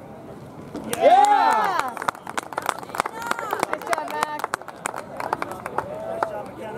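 A group of teenagers claps.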